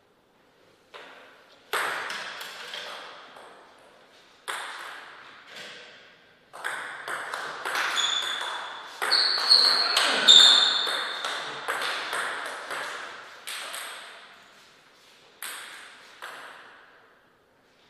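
A table tennis ball clicks against paddles and the table, echoing in a large hall.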